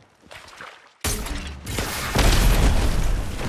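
An explosion bursts with a heavy boom.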